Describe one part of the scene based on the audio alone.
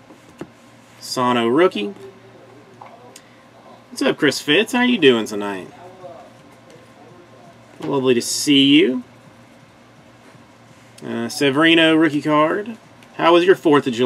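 Trading cards rustle as they are shuffled through by hand.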